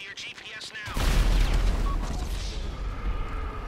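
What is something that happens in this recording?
A single gunshot bangs loudly and echoes.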